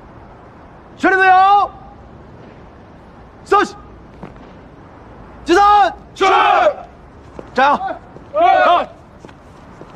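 A man shouts commands loudly outdoors.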